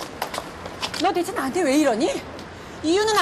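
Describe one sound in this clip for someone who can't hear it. A woman speaks excitedly in a high voice, close by.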